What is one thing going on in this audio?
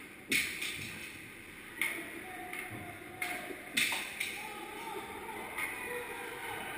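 Hockey sticks and pucks knock and clack sharply.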